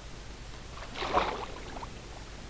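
Water splashes as a swimmer plunges under the surface.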